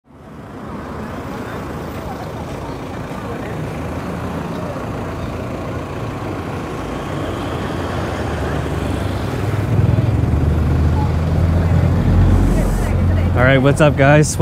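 Street traffic hums steadily outdoors.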